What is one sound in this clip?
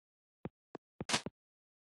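A golf ball drops into the hole with a quick rattle.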